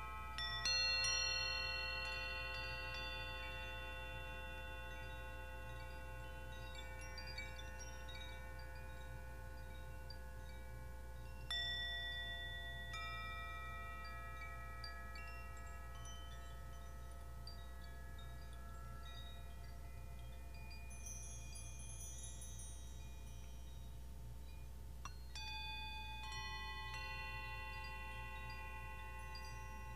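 Metal chimes and bells ring out and slowly fade, heard in a large echoing room.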